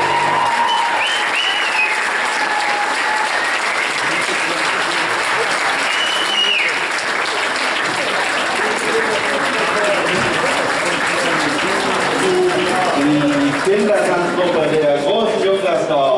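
A large crowd chatters and murmurs in a big echoing hall.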